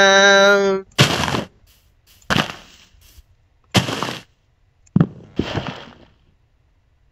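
Blocks break with short, crunching digging sounds.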